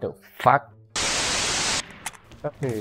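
Loud static hisses and then cuts off.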